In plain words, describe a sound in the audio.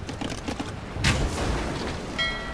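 Cannons boom as warships exchange fire.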